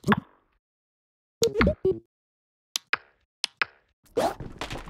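Short game menu sounds click and blip.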